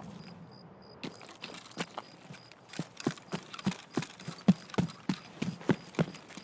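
Footsteps fall on the ground at a walking pace.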